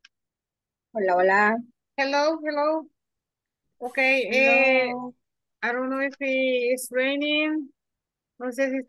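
A woman speaks clearly and with animation through an online call.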